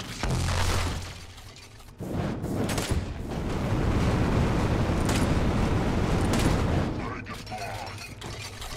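Gunfire blasts rapidly.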